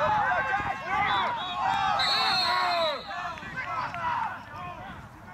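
A crowd of people cheers and shouts loudly outdoors.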